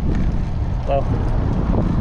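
A jogger's footsteps pat on concrete.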